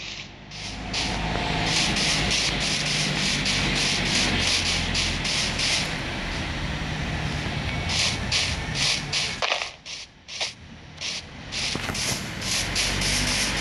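Footsteps crunch steadily on grass.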